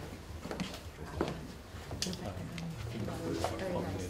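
A woman greets people and laughs softly.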